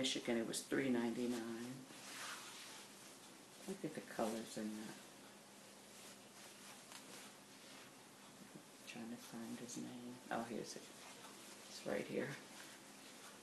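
A woman speaks calmly into a microphone close by.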